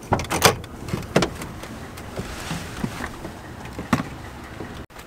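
A car door unlatches and swings open.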